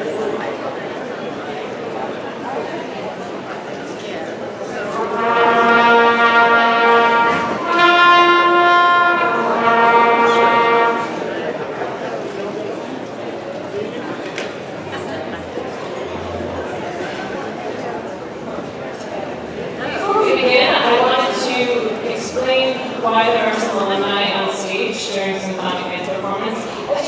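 A crowd murmurs and chatters at tables.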